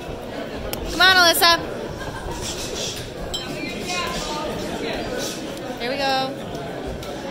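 A woman shouts encouragement loudly nearby.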